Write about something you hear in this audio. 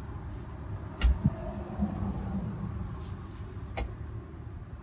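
A small metal tin of shoe polish clicks as its lid is handled.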